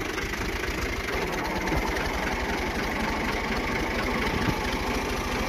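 A tractor engine chugs steadily up close.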